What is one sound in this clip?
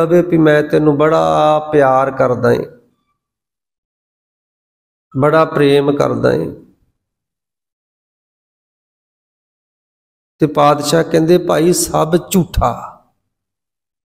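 A man chants in a melodic voice, in short phrases with long pauses.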